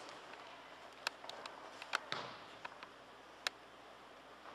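A soccer ball is kicked with a thud in an echoing indoor hall.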